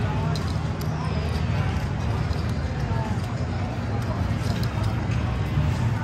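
Playing cards slide across a felt table.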